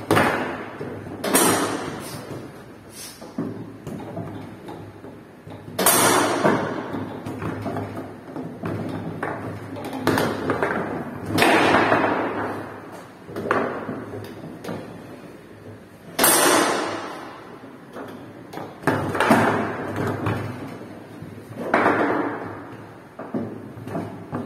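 Metal rods clack and spin in quick bursts.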